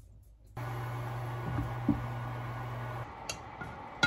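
A metal lid clinks against a pot.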